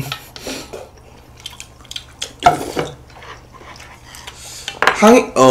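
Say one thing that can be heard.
A young man chews and slurps noodles.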